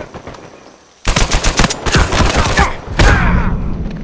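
Rapid rifle fire rattles close by.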